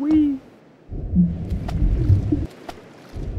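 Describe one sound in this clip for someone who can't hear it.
Something plunges into the sea with a heavy splash.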